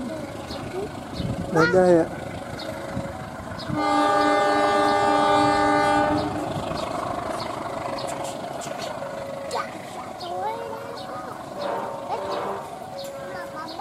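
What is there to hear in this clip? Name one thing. A train rumbles slowly along the rails, moving away.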